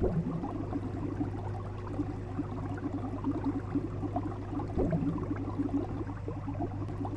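Water bubbles and gurgles steadily in an aquarium.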